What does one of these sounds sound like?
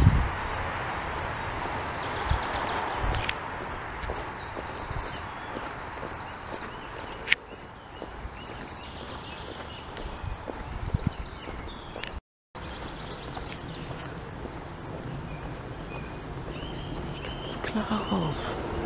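Wind blows across open ground, rustling tall grass.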